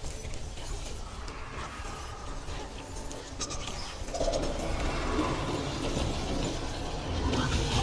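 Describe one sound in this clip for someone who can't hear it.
A low, eerie rumble drones in the background.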